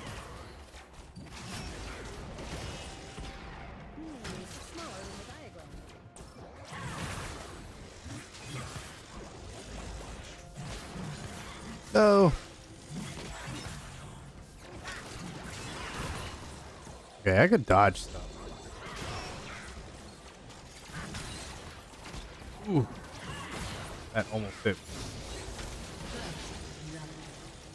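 Game combat effects whoosh and clash.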